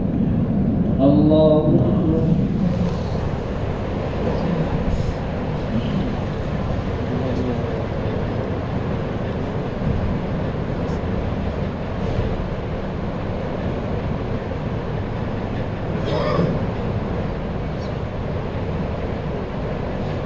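A ceiling fan hums steadily.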